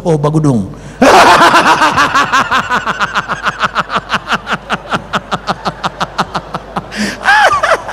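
A crowd of people laughs loudly.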